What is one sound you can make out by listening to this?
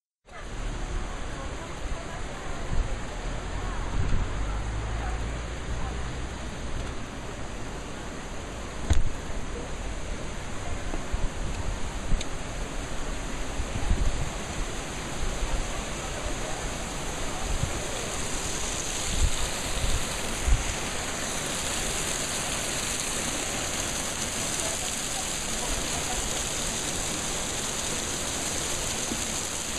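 Hot spring water rushes and splashes over rocks.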